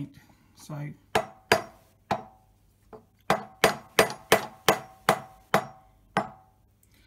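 A mallet taps sharply on metal, several times in quick succession.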